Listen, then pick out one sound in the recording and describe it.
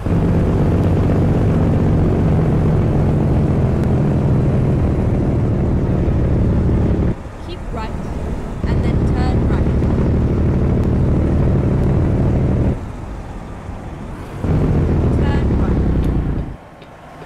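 A diesel truck engine drones from inside the cab, easing off twice and then pulling again.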